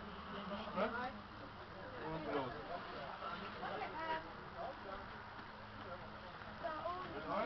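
A young man talks calmly to a small group nearby.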